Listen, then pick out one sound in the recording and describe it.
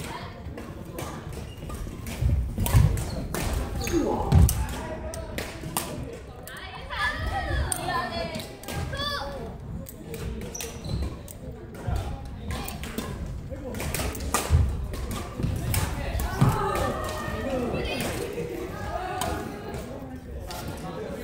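Shoes squeak and thud on a wooden court.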